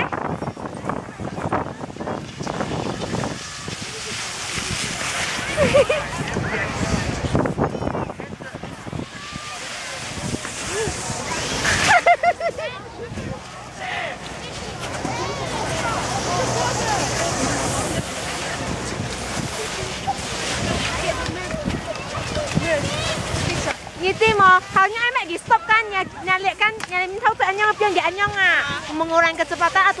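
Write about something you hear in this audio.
Skis scrape and slide over snow.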